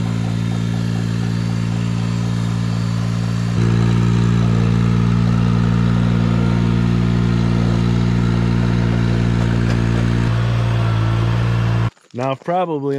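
A small engine runs loudly and steadily close by, then cuts off.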